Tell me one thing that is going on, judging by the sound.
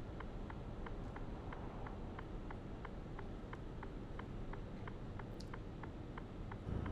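A turn signal ticks quickly and evenly.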